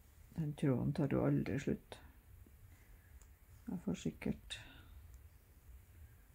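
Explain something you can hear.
A needle and thread pull softly through fabric.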